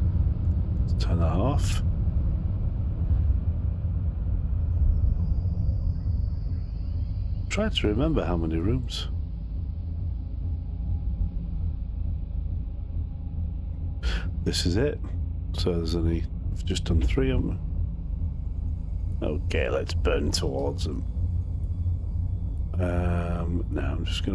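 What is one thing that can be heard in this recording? A spaceship's warp drive rumbles with a deep, steady drone.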